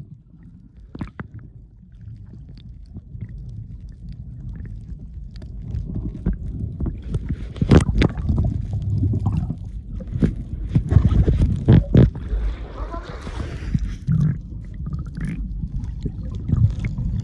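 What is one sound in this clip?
Water splashes and knocks against the surface close by.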